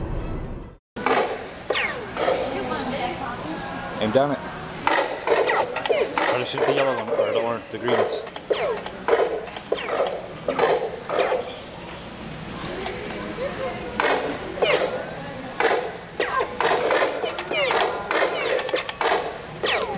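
Toy guns click and beep with electronic sounds.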